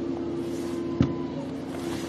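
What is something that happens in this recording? A ball is kicked with a dull thud.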